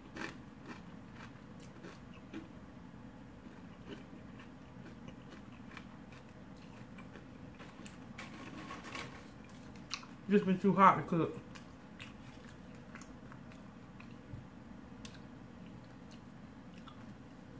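A woman crunches tortilla chips close to the microphone.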